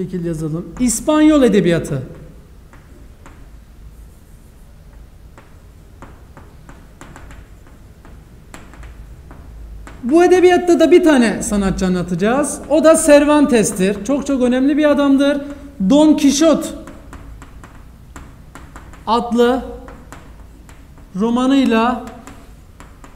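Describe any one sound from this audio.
A young man speaks calmly nearby, pausing between phrases.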